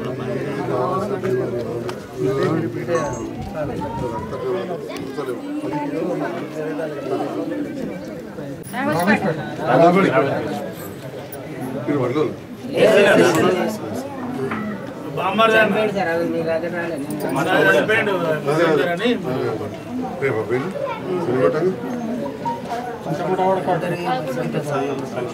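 A middle-aged man speaks calmly up close.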